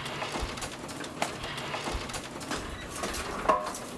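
A garage door rattles as it rolls open.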